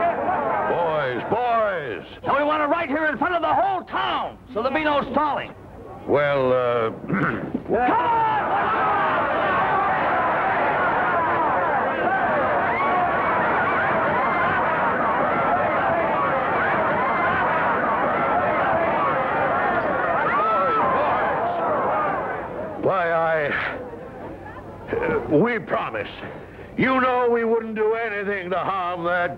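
An older man speaks loudly to a crowd.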